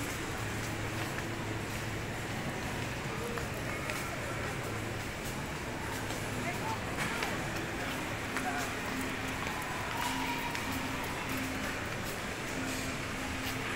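A shopping trolley rattles as it rolls over a tiled floor.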